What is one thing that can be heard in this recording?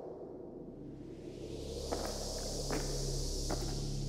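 Children's footsteps patter across a wooden stage.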